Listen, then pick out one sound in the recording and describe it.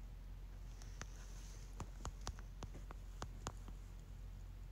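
Soft keyboard clicks tap quickly as letters are typed.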